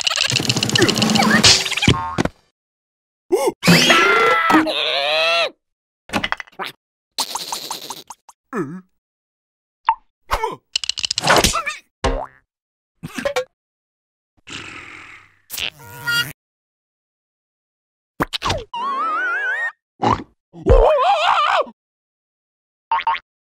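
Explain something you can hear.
A squeaky cartoon voice babbles and exclaims excitedly.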